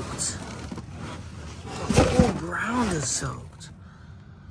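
Cardboard boxes scrape and rustle as they are shifted.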